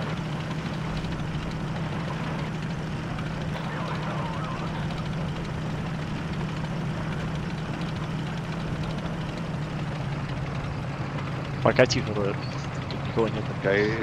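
A tank engine rumbles steadily with a low drone.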